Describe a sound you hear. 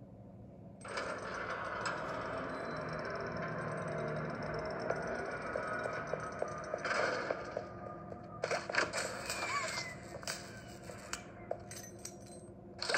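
Game footsteps patter quickly on a hard floor.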